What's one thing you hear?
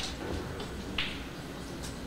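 Snooker balls knock together with a click.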